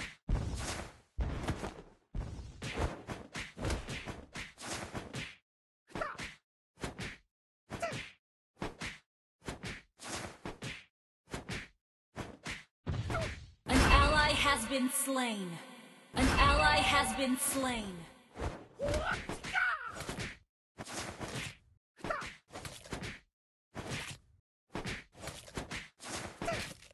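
Video game combat effects clash and thud in quick bursts.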